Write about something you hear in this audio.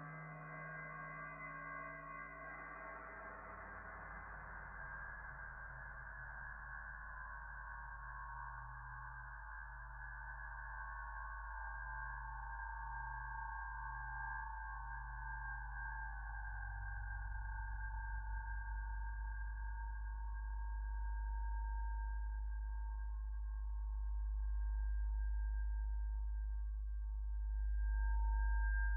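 A low electronic bass hum swells gradually louder.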